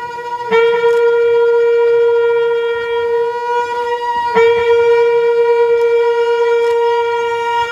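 A woman sings long, steady held notes.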